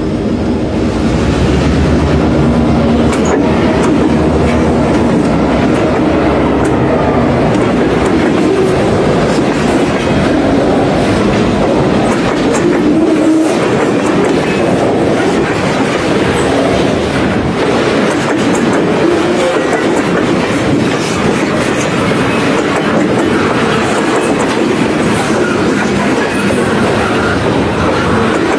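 Freight cars rattle and clatter loudly over the rails.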